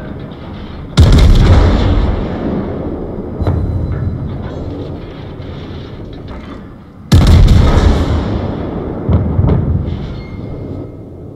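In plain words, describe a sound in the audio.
Heavy naval guns fire with loud, rumbling booms.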